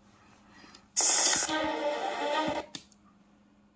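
A handheld game console plays a short burst of game sound through its small speakers.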